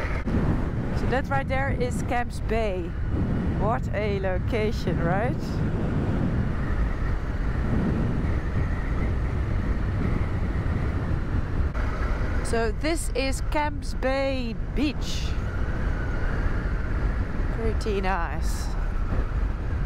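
A young woman talks calmly through a helmet microphone.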